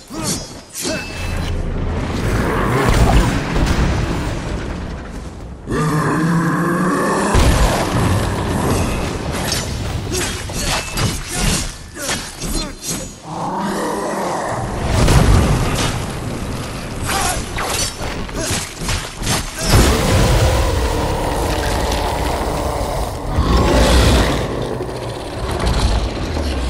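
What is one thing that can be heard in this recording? Explosions boom and rumble as debris crashes down.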